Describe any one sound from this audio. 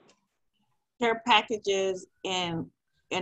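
A second woman speaks over an online call.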